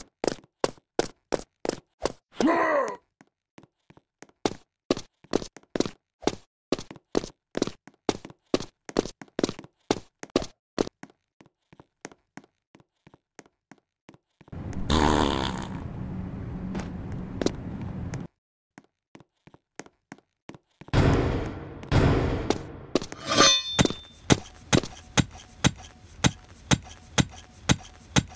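Footsteps tap quickly and evenly.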